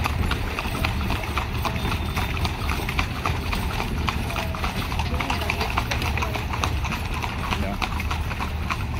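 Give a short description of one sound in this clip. A horse's hooves clop at a trot on an asphalt road.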